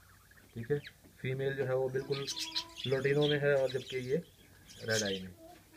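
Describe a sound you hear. A budgie chirps softly.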